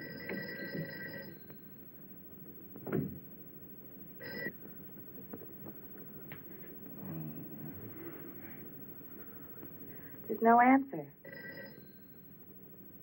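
A telephone rings.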